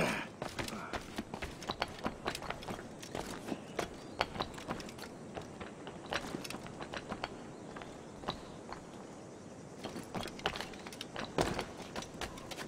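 Footsteps clatter quickly on roof tiles.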